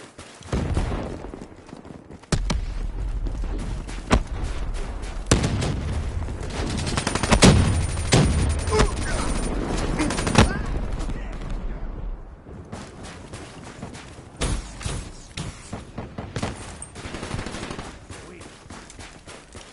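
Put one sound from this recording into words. Gunshots fire in sharp bursts.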